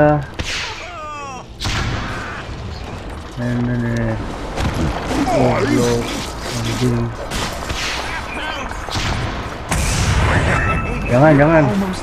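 Video game battle sound effects clash and burst.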